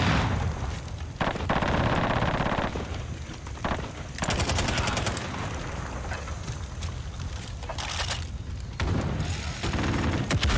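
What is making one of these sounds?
A helicopter's rotor thuds close by.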